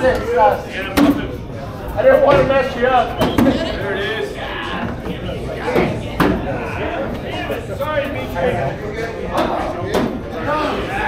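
Bean bags thud onto a wooden board.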